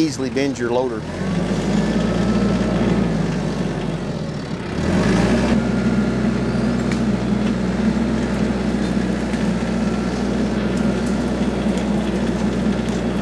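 A tractor engine starts and rumbles steadily.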